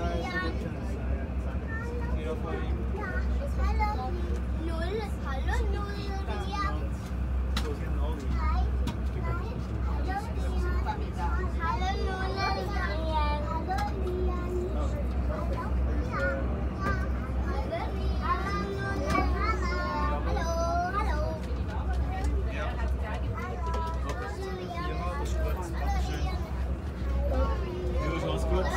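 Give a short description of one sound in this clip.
Adult passengers chat nearby.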